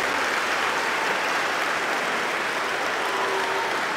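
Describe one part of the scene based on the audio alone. A crowd claps their hands.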